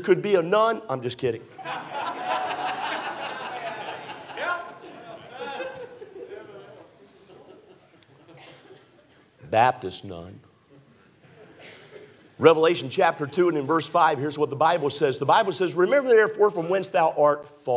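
A middle-aged man preaches with animation through a microphone in a large echoing hall.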